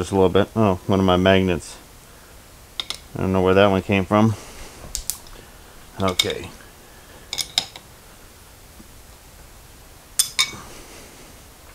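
A wrench clanks against metal on a lathe.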